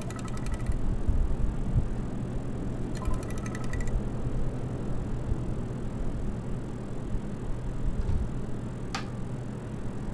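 A propeller engine idles with a steady low rumble.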